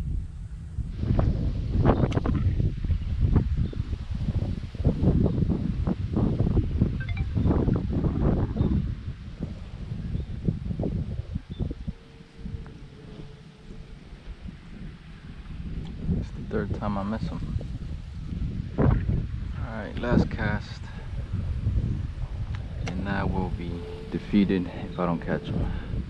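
Wind blusters and rumbles outdoors.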